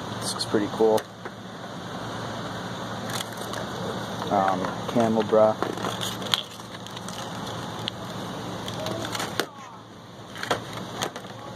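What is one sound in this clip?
A plastic tag crinkles and taps as a hand handles it.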